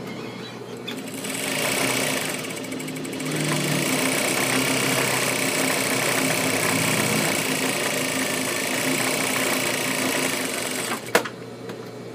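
A sewing machine motor hums steadily, then stops with a click.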